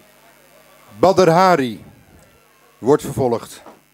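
A man sings loudly through a microphone, his voice sliding up and down.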